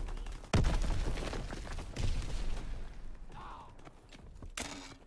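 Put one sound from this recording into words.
Gunshots boom loudly with echoing tails.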